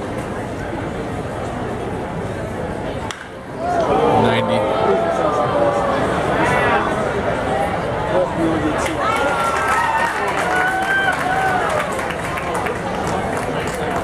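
A crowd murmurs and cheers in an open stadium.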